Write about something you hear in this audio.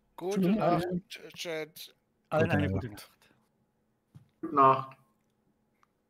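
A middle-aged man speaks calmly in short phrases, close to a microphone.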